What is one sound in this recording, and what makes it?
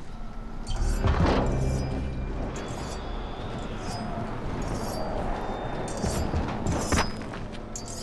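A person lands with a heavy thud.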